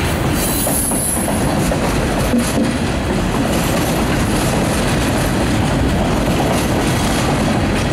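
Freight cars roll past over a road crossing, steel wheels clattering and rumbling on the rails.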